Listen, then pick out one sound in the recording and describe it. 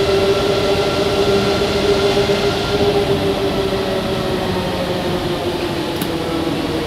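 A tram rumbles and whines steadily while moving.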